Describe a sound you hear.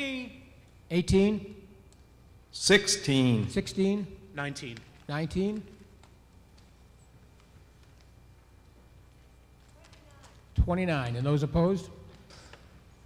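A middle-aged man speaks calmly into a microphone, heard over a loudspeaker in a large echoing hall.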